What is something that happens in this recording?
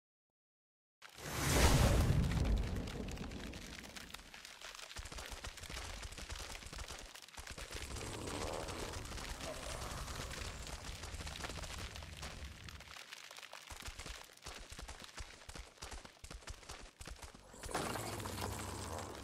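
A large creature breathes out a hissing blast of icy wind.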